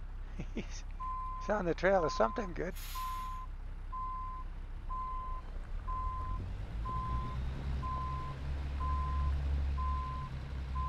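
A reversing alarm beeps in an even rhythm.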